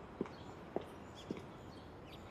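Footsteps tap slowly on hard ground.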